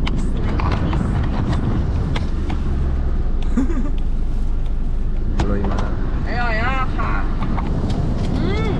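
A young woman talks and exclaims in a high voice.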